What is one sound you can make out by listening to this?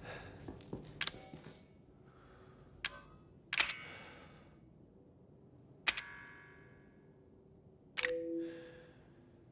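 Short electronic clicks and chimes sound as menu items are selected.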